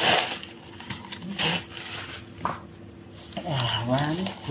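Wrapped ceramic pots knock softly against cardboard.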